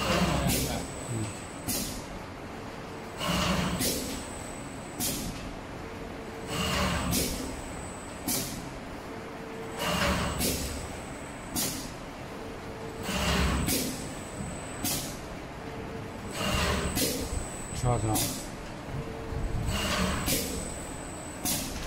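A cutting machine snaps its blade down in a steady, repeating rhythm.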